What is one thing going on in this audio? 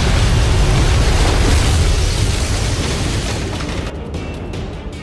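Heavy waves crash and spray against a ship's hull.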